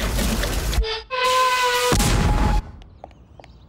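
A water heater bursts with a loud whoosh.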